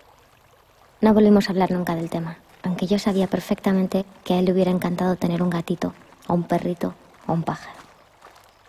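A young woman speaks calmly nearby, outdoors.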